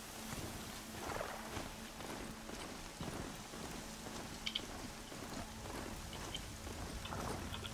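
Heavy mechanical hooves thud and clank at a steady gallop.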